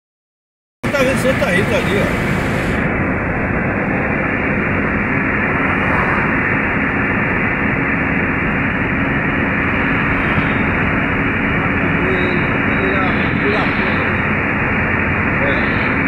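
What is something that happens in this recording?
A car's engine hums steadily, heard from inside the car.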